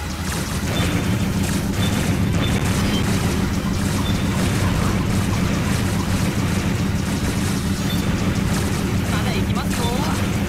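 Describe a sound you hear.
Explosions burst repeatedly.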